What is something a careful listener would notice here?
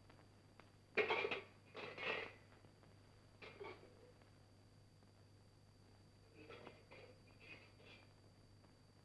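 Metal pots clatter and clang in short bursts.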